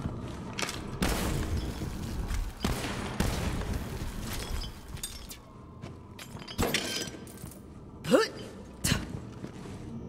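Guns fire in short sharp bursts.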